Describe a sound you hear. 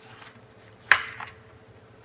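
A spoon scrapes against a foil pan.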